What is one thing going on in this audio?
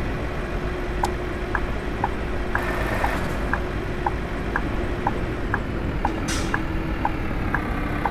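A turn signal ticks at an even pace.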